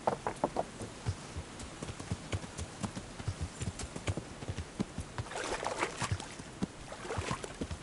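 Horse hooves thud on hard ground.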